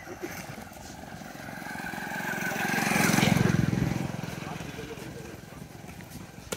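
A motorbike engine passes by.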